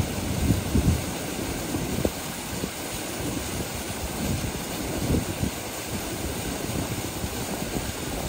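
A person wades through shallow water.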